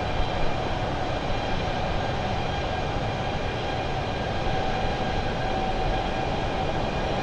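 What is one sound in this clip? Jet engines roar steadily with a constant whine.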